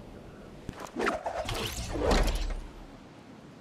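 A glider opens with a loud flapping whoosh.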